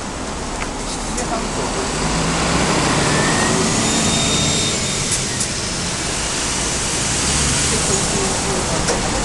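Cars drive past on the road below.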